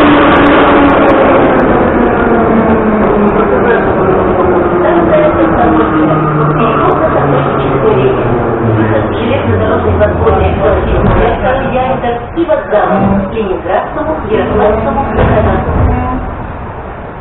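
A metro train rumbles loudly and slows down with a falling whine.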